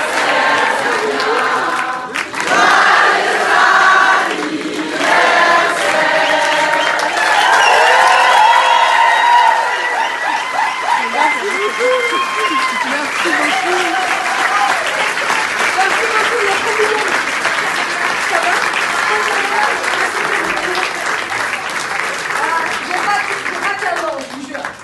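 A large crowd claps and cheers in a hall.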